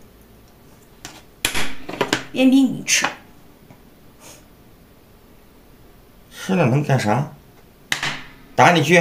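A game piece clicks down onto a wooden board.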